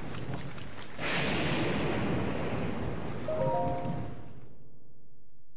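A magical teleport sound swells and shimmers, then fades away.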